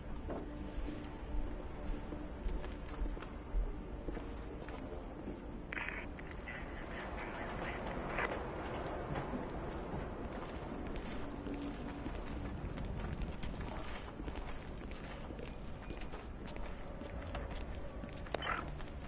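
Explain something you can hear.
Footsteps scuff across a floor.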